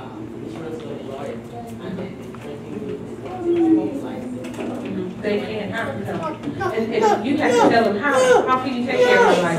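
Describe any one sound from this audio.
A woman speaks through a microphone with growing animation, her voice echoing in a room.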